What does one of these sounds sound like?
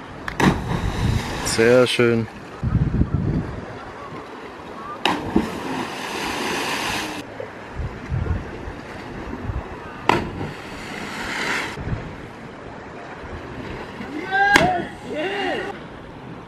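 A body splashes into the sea below.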